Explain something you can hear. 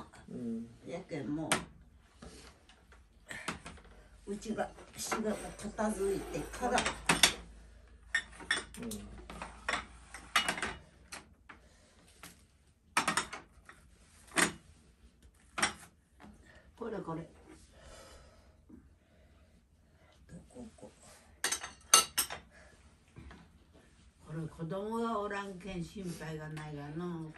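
Dishes and cups clink on a table.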